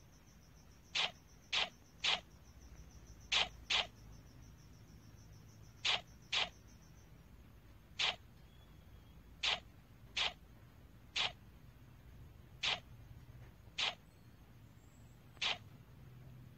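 A game menu gives short clicks as items are selected.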